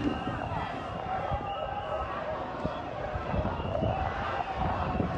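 A large crowd chants and shouts in a wide open square.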